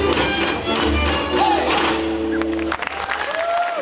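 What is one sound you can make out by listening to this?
Folk musicians play a lively tune.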